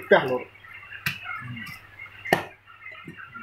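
A cleaver chops sharply through meat and bone onto a wooden block.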